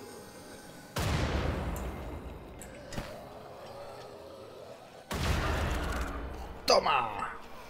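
Gunshots ring out in loud rapid bursts.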